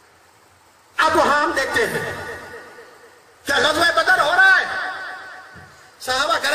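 An elderly man speaks forcefully into a microphone over loudspeakers, with echo.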